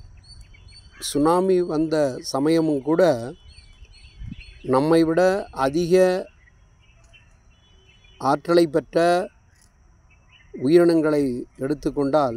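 A middle-aged man speaks calmly and close by, in bursts with pauses.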